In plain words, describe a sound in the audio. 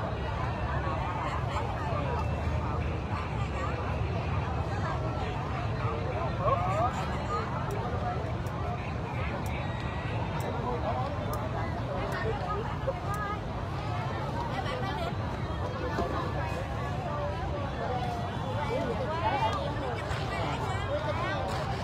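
A large crowd of people chatters all around outdoors.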